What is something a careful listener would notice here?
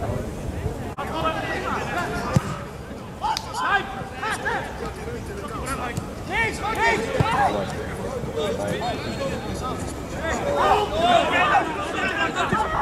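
Spectators call out from the sidelines.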